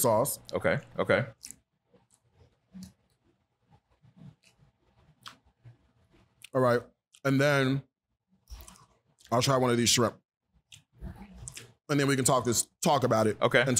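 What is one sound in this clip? A man speaks calmly and close into a microphone, pausing between phrases.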